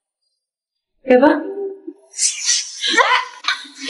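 A second young woman speaks with animation, close by.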